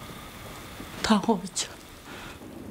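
An elderly woman speaks quietly and close by.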